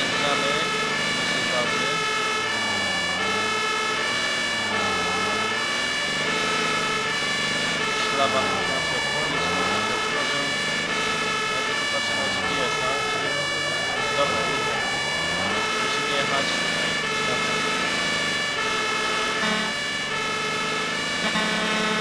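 An engine hums as a vehicle drives along.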